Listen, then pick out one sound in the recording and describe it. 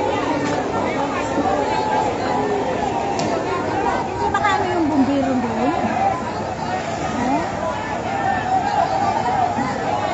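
A crowd of people chatters and shouts nearby outdoors.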